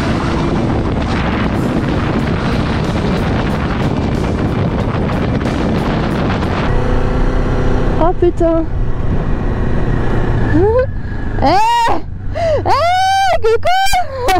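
A motorcycle engine hums steadily as it rides.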